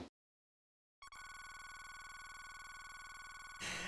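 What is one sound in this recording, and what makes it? A computer terminal beeps rapidly as text prints out.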